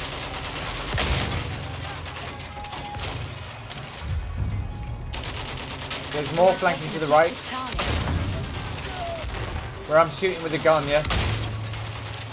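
Rifle shots crack.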